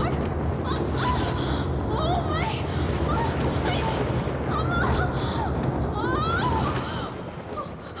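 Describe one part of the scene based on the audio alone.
A young woman shouts and wails loudly.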